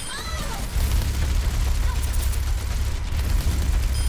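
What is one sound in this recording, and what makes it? Gunfire blasts in a video game.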